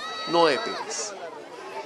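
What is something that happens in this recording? A baby cries loudly up close.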